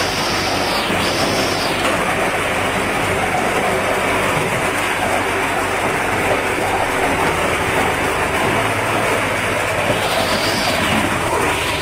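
Ice cubes clatter as they fall into a bin.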